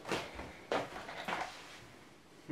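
Objects clatter on a wooden table.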